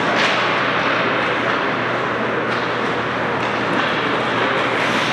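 Skate blades scrape and swish across ice.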